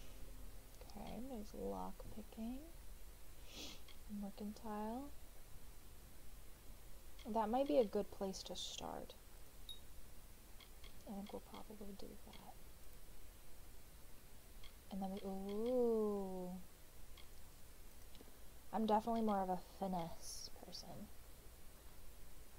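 A young woman talks casually into a close microphone, in short bursts.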